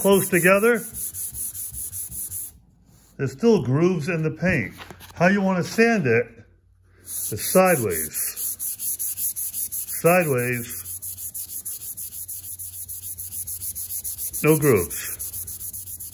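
A sanding block rubs back and forth over a smooth surface with a rhythmic scratching.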